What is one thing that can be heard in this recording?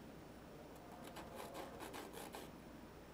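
A pastel stick scratches softly across a rough board.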